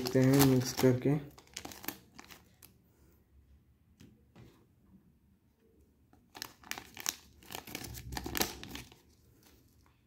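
Foil wrappers crinkle and rustle as they are handled up close.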